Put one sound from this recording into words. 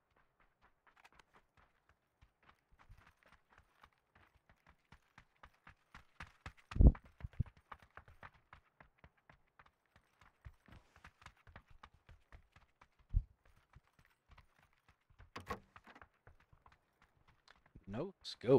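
Footsteps patter quickly on hard floors.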